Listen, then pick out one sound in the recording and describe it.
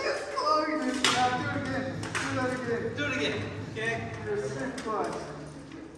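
Steel swords clash and clank.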